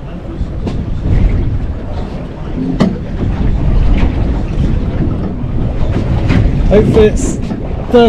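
A fishing reel is wound in.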